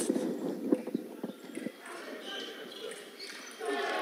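Fencing blades clash and clink.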